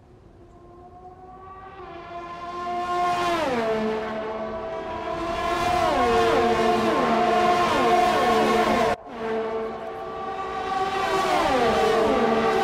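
Several race car engines rev together and rise in pitch as the cars accelerate.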